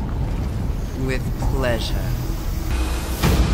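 A woman speaks in a low, menacing voice close by.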